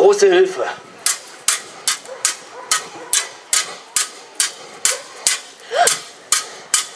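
Swords clash rapidly in a rhythmic series of metallic clanks.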